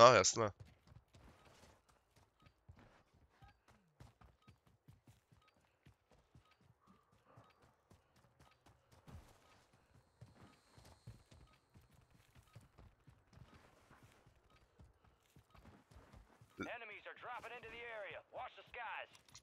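Footsteps run over ground.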